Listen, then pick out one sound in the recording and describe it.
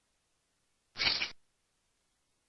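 Salt shakes out of a jar.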